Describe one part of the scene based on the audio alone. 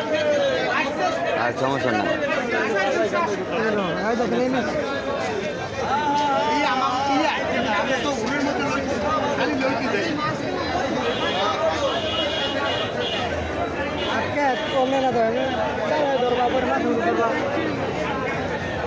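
Several men and women talk over each other nearby.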